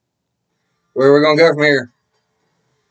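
A young man speaks a short, loud phrase close to a microphone.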